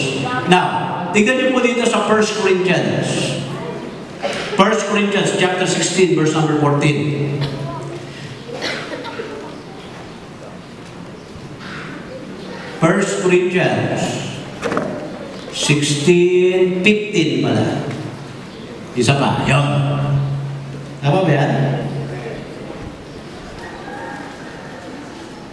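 A middle-aged man speaks with animation into a microphone, heard through loudspeakers in an echoing space.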